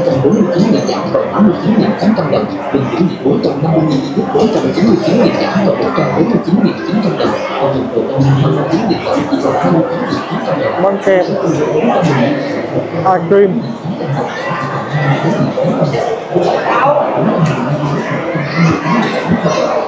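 A crowd of shoppers chatters all around in a large echoing hall.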